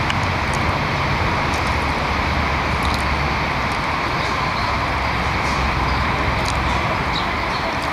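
A squirrel scurries over dry ground.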